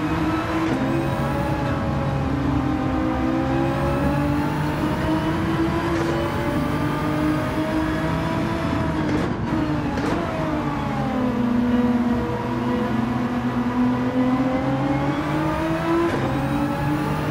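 A racing car engine roars, rising in pitch and dropping sharply at each gear change.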